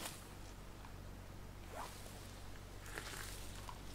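Water splashes softly as hands scoop it up.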